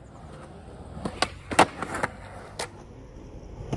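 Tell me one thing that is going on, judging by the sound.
A skateboard clatters and snaps as it pops and lands on concrete.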